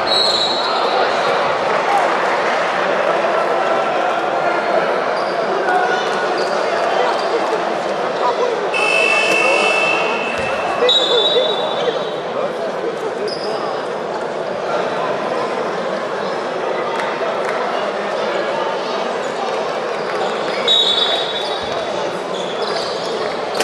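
A crowd chatters and cheers throughout a large echoing hall.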